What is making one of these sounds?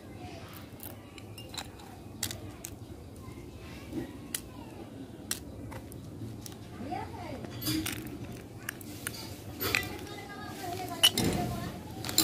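Small candies click and rattle against plastic.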